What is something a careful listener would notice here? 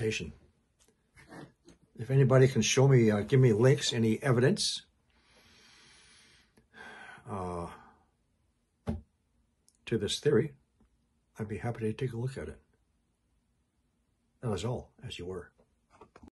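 An elderly man talks calmly and close to a microphone, with pauses.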